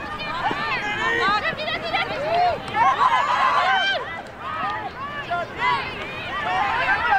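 Young women shout and call out across an open field.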